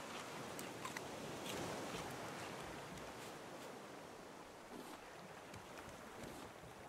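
Ocean water laps and splashes gently.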